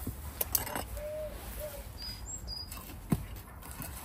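A metal trowel scrapes into soil.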